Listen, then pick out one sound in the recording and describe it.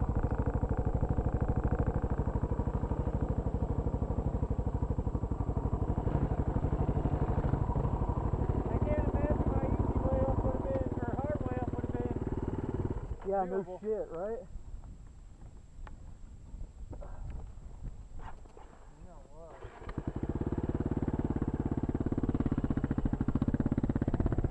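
A motorcycle engine idles close by with a steady rumble.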